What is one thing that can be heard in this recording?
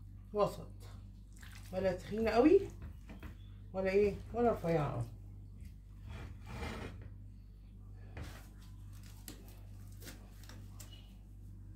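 A gloved hand squishes and mixes wet food in a glass bowl.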